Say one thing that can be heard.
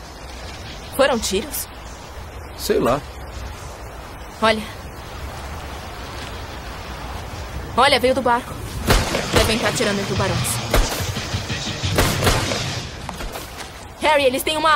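A young man calls out outdoors.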